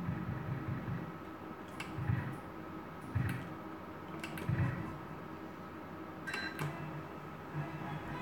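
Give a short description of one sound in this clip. A slot machine's reels spin and click to a stop.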